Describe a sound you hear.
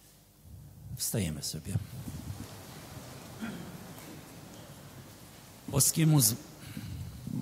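An elderly man chants into a microphone in a large echoing hall.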